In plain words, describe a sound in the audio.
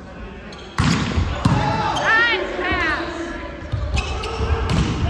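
A volleyball thuds as it is hit.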